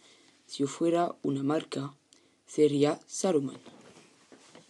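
A teenage boy speaks calmly and close up.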